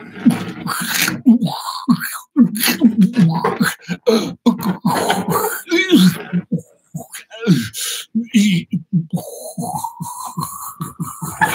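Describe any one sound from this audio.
A man speaks with animation into a microphone, close up.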